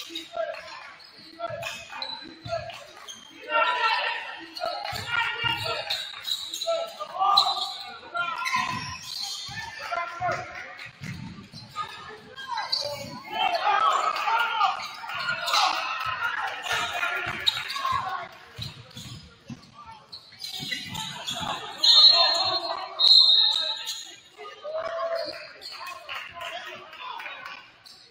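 Young men shout to each other across an echoing gym.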